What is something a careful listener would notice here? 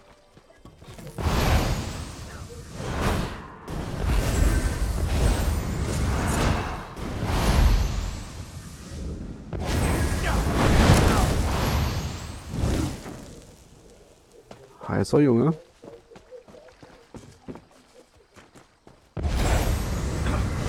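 Magic fire blasts roar and crackle in bursts.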